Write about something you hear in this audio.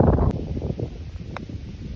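A golf club swishes through the air.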